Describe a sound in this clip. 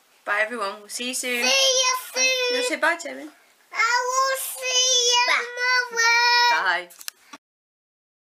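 A woman speaks cheerfully and closely into a microphone.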